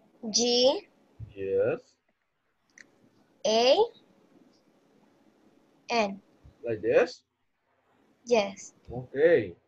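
A young girl speaks in short, halting phrases through an online call.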